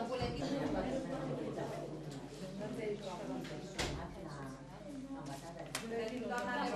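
Several women talk at once nearby.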